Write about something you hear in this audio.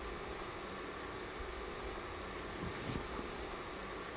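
Bedding rustles as a man shifts in bed.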